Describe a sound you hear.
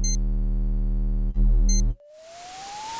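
Electronic beeps sound from a keypad.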